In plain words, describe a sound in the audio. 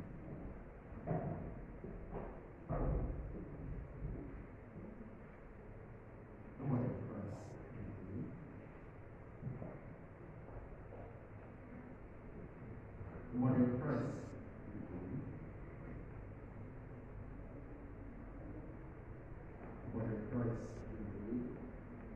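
A man speaks in short, quiet phrases in an echoing hall.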